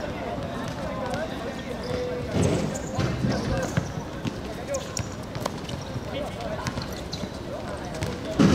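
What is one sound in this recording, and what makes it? A football is kicked on a hard court.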